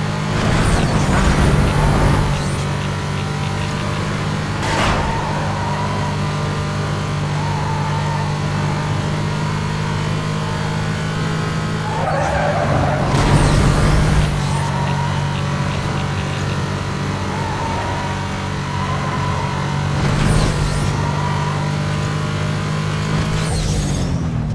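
A racing car engine roars steadily at high speed.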